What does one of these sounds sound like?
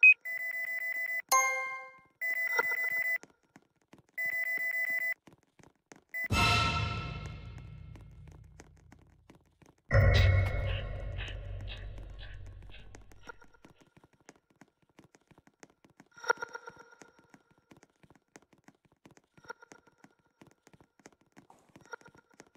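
Footsteps patter as a game character runs across a hard floor.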